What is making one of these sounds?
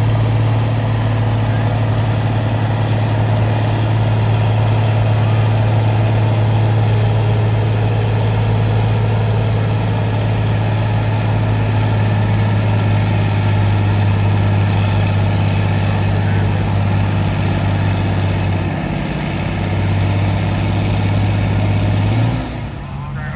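A tractor engine roars loudly and steadily up close as it pulls a heavy sled.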